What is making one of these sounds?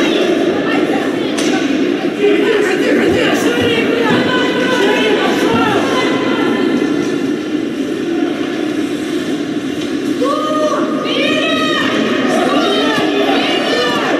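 A crowd of spectators chatters and calls out nearby.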